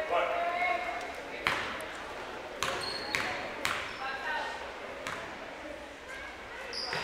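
A ball bounces on a wooden floor.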